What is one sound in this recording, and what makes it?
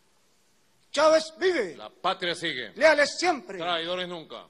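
A man speaks firmly into a microphone over loudspeakers.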